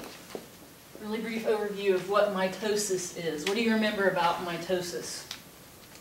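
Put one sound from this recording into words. A woman speaks clearly, lecturing in a room.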